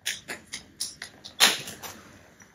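A young boy laughs close by.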